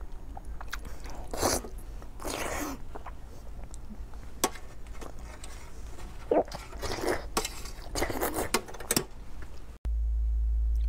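A woman slurps food loudly and noisily, close up.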